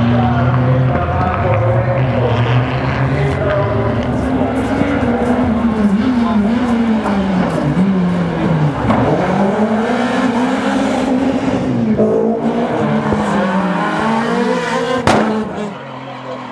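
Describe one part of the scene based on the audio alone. A rally car engine revs hard at full throttle, shifting gears as it races past.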